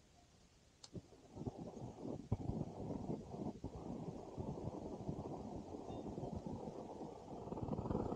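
A gas burner roars steadily outdoors.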